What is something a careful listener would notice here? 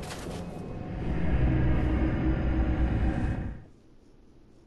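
A shimmering magical whoosh swells and fades.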